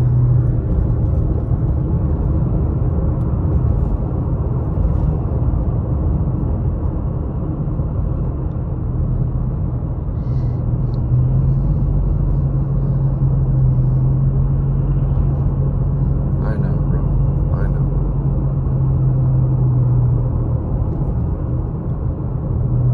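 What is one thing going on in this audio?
Tyres roll and rumble on the road.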